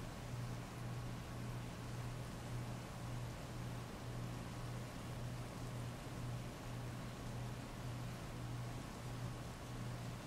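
Heavy rain pours steadily onto a wet street.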